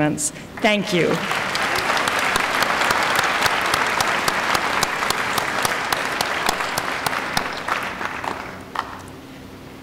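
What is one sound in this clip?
A large crowd applauds and cheers in a large hall.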